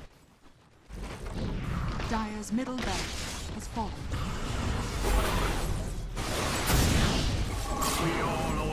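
Game battle sounds of spells and weapons clash loudly.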